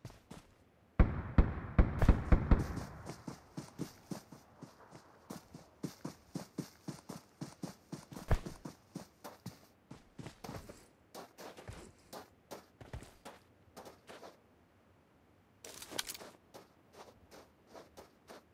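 Footsteps crunch steadily across grass.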